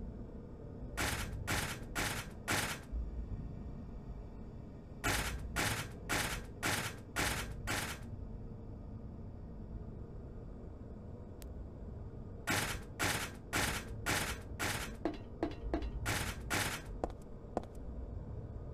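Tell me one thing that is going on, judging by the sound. Footsteps clank on a metal grating.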